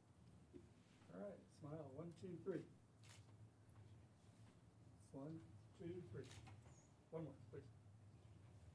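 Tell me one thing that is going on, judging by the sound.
A man speaks calmly nearby in a large room.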